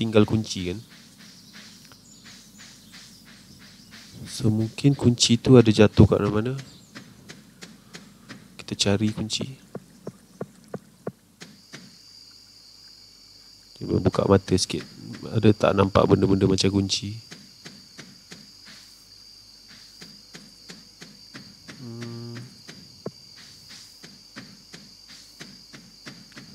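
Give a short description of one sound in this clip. Footsteps patter quickly and steadily on a path.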